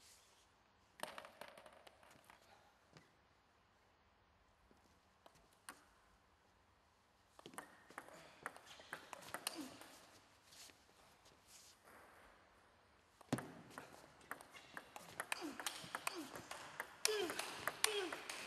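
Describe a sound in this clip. A table tennis ball clicks sharply against a paddle.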